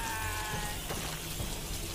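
Rats squeak shrilly.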